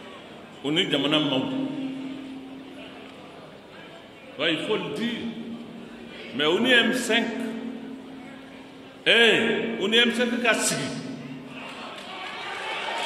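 An elderly man speaks forcefully into microphones in short bursts, his voice echoing through a large space.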